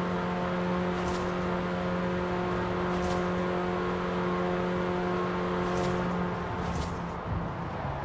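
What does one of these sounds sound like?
Passing cars whoosh by in quick bursts.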